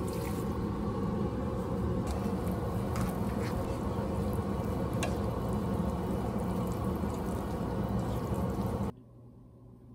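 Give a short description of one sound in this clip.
Sauce sizzles loudly in a hot pan.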